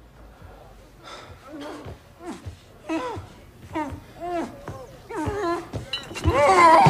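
A young man speaks with some surprise.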